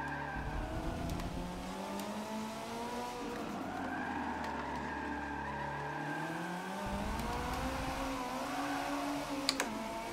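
A sports car engine in a racing game revs and changes gears through loudspeakers.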